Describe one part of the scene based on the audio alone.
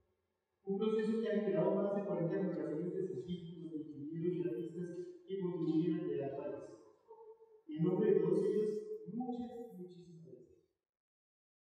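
A man speaks calmly into a microphone over loudspeakers in an echoing hall.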